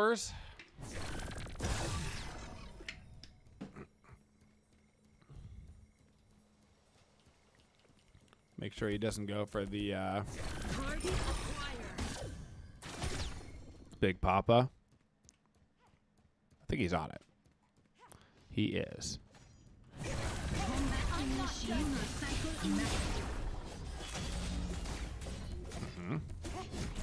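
Game spells whoosh and clash in bursts.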